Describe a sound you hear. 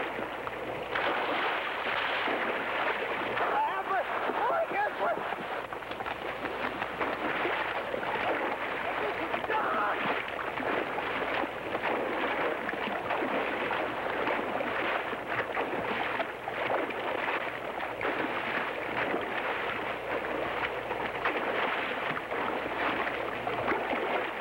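A river rushes and splashes loudly.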